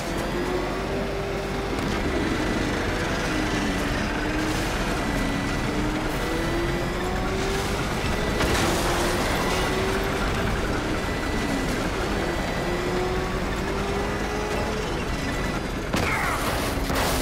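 A vehicle engine roars as it races through a tunnel.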